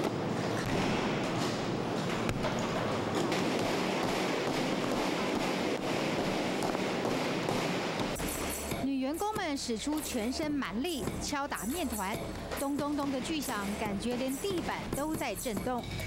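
Wooden rolling pins thump and pound on dough.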